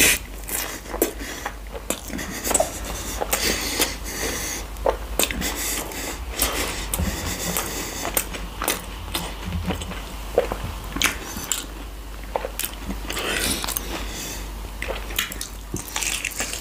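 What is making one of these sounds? A man chews fried chicken close to a microphone, with wet smacking.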